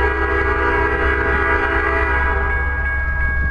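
A train horn blows in the distance.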